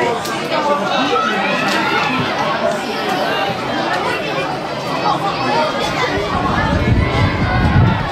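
Spectators chatter and call out nearby outdoors.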